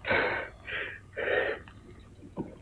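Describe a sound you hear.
A young man shouts playfully.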